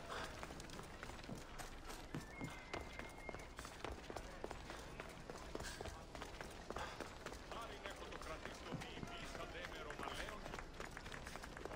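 Footsteps run quickly on stone paving.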